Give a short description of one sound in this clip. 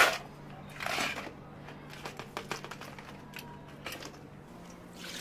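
Ice cubes clatter into plastic cups.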